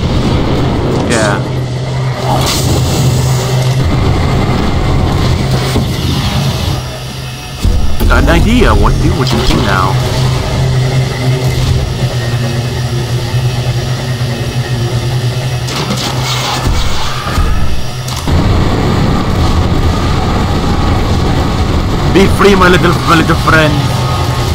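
Creatures screech and growl.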